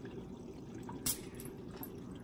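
A bottle cap clicks as it is twisted open.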